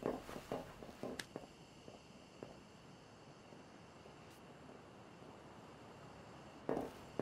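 Soft footsteps shuffle across a hard floor.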